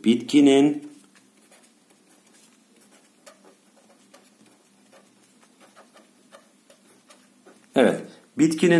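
A marker pen squeaks and scratches softly across paper.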